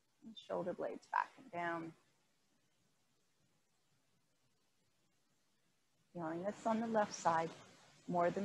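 A woman speaks calmly, close by, with pauses between phrases.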